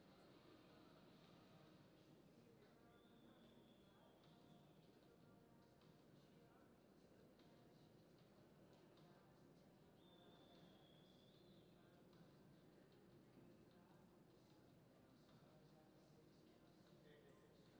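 A horse's hooves thud softly on loose dirt.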